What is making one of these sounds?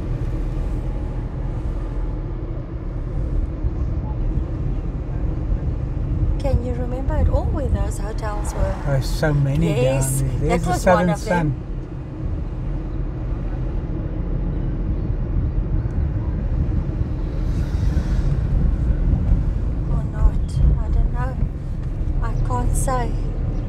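A car engine hums steadily as tyres roll over the road.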